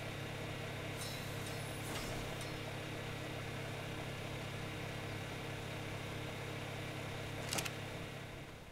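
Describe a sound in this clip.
Short game menu clicks and chimes sound.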